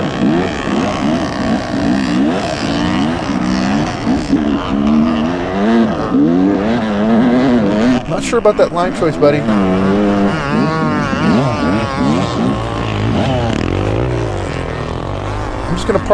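A dirt bike engine revs up and down.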